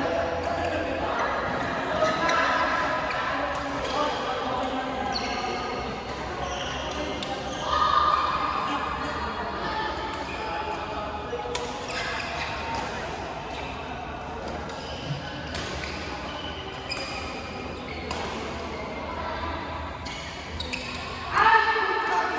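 Men call out and chatter around a large echoing hall.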